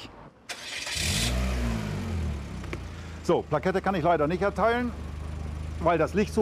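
A motorcycle engine starts and idles with a low rumble.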